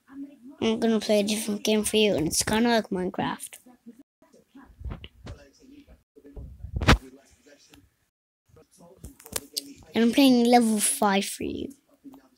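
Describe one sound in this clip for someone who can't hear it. A young boy talks with animation, close to a microphone.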